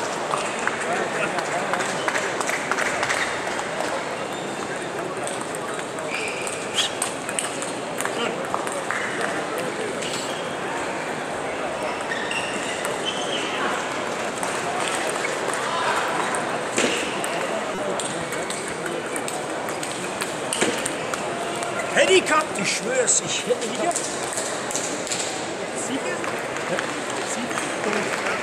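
Table tennis balls click sharply against paddles and tables, on and off.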